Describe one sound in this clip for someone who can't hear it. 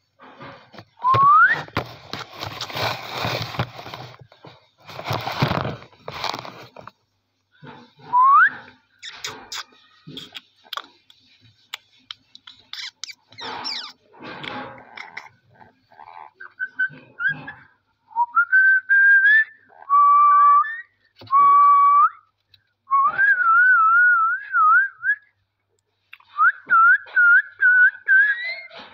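A parrot whistles and chirps close by, with rising and warbling calls.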